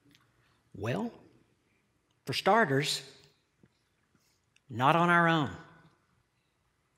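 A middle-aged man speaks slowly and earnestly in short phrases through a headset microphone, with pauses between them.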